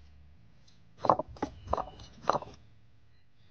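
Chopsticks scrape and clatter against a ceramic bowl while stirring.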